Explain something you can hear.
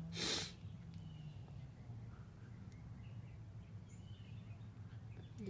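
A hand softly rubs a cat's fur.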